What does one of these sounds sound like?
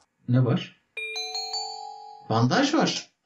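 A short chime sounds from a game.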